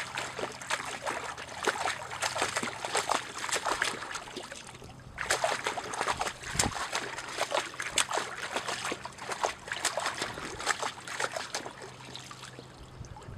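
A dog laps and splashes water in a muddy puddle.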